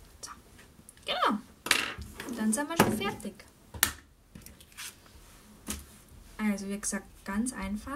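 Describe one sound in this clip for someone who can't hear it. A stiff paper card rustles and taps as hands handle it.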